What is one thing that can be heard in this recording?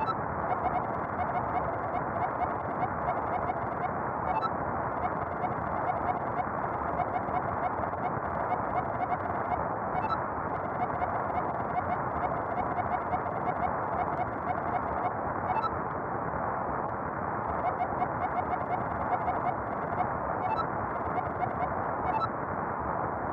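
Short electronic blips tick rapidly as a message types out, in bursts with brief pauses.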